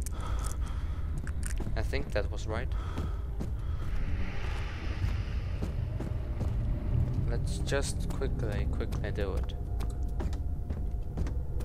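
Footsteps creak and thud on wooden floorboards.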